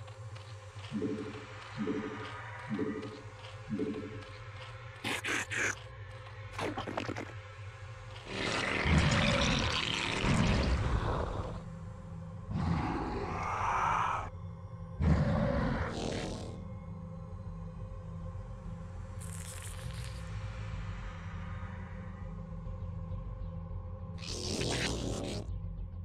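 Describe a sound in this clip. Alien creatures screech and snarl in short bursts.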